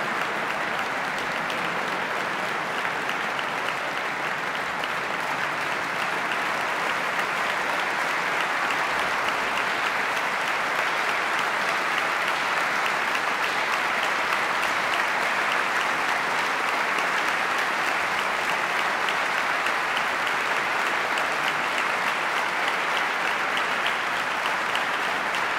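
A large audience applauds steadily in a big hall.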